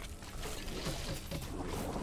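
A magic spell bursts with a whoosh.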